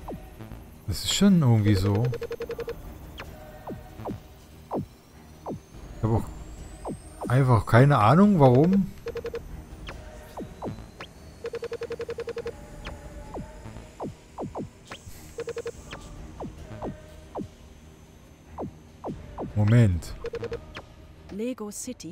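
Short clicks and chimes sound as puzzle pieces turn into place.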